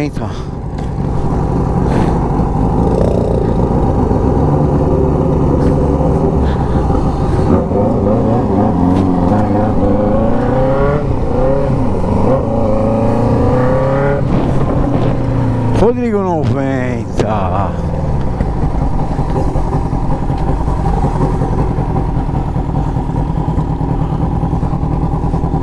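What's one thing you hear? A motorcycle engine hums close by, rising and falling in pitch as it speeds up and shifts gears.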